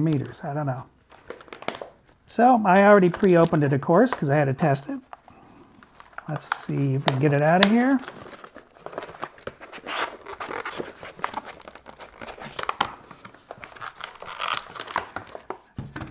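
Plastic packaging crinkles and clicks as it is handled.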